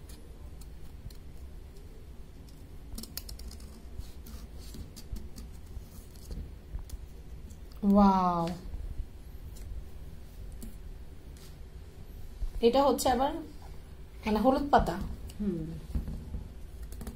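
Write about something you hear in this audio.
A knife scrapes and cuts into a firm pumpkin rind.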